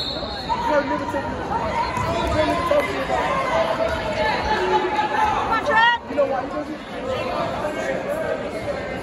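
A man shouts encouragement from close by.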